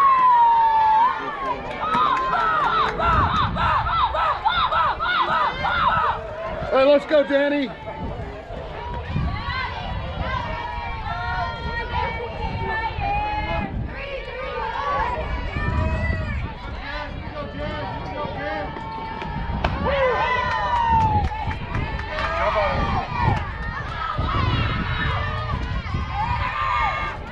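A group of young women chant and cheer loudly nearby, outdoors.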